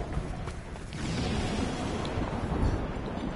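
Water splashes as a body plunges in.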